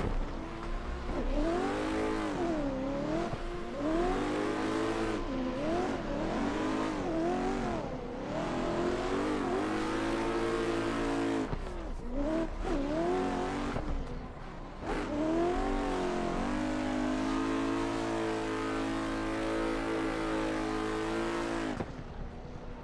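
Tyres screech on the track.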